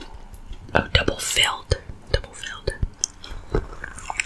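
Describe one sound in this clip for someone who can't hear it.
A woman bites into a soft frosted pastry close to a microphone.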